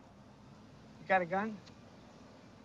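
An older man answers calmly.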